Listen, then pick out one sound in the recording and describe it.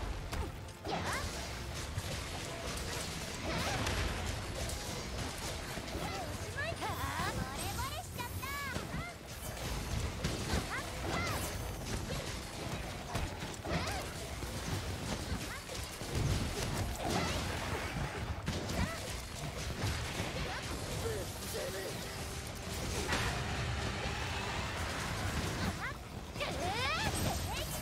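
Fiery blasts and magical attacks crackle and boom during a fierce battle.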